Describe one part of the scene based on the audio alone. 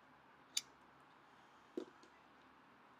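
A lighter clicks sharply close by.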